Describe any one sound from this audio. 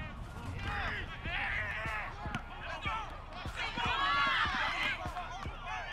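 Football players' pads thud as they collide.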